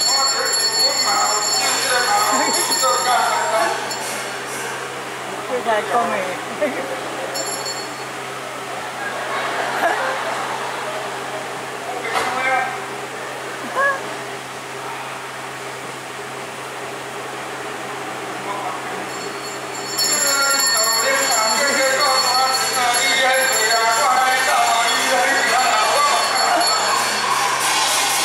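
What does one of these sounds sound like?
A man sings in a loud, drawn-out operatic voice through a loudspeaker.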